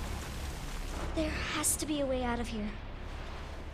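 A young girl speaks softly and fearfully, close by.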